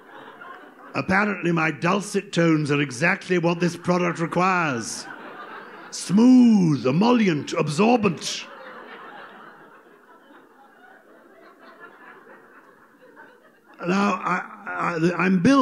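An elderly man speaks with animation through a microphone in a large room.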